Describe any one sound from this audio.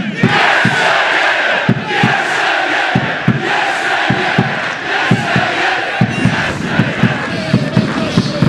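A crowd of fans claps hands in rhythm.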